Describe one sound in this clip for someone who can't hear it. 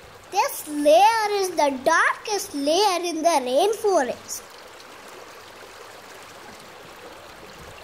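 A waterfall rushes and splashes.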